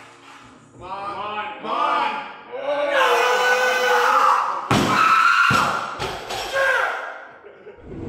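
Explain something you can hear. A man yells loudly while straining.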